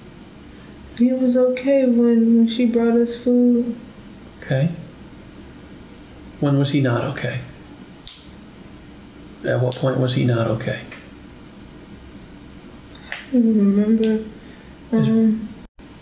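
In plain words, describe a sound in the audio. A young woman answers calmly in a small room, heard from a distance.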